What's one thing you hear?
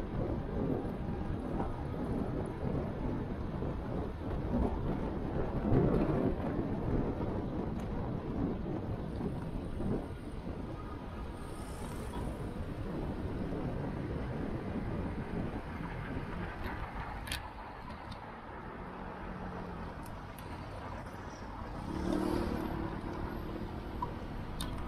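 Wind rumbles past a moving bicycle outdoors.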